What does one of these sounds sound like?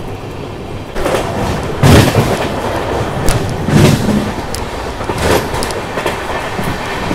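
Train wheels clatter and thump over rail joints and points.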